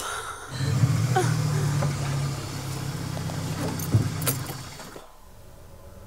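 A car engine rumbles close by as the car rolls to a stop.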